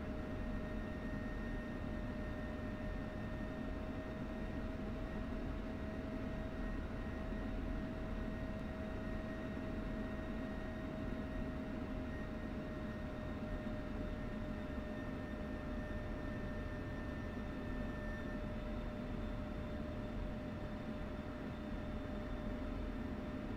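A jet engine whines and rumbles steadily from inside the cockpit.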